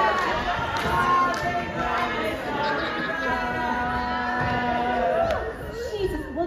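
A group of young performers sings together in a large hall.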